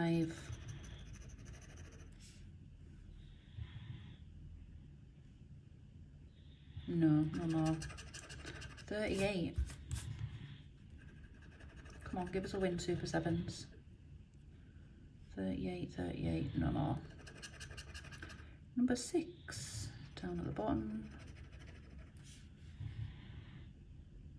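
A metal tool scratches at a card in short rasping strokes.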